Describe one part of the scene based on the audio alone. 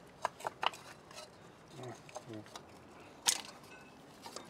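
Metal parts clink and scrape as they are worked loose.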